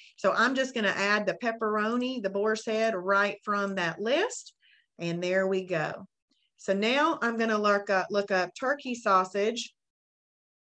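A woman talks calmly and clearly into a nearby microphone.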